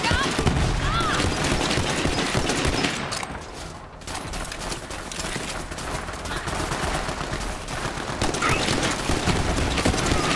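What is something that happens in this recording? A rifle fires sharp, rapid shots.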